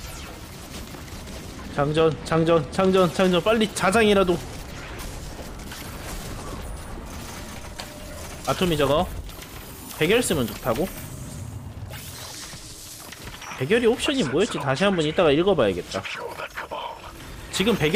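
Rapid gunfire from an energy weapon crackles and blasts.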